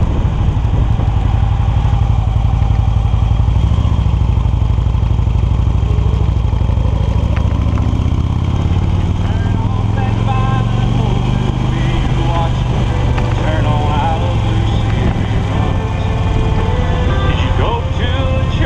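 Wind rumbles loudly and steadily against the microphone as it moves along.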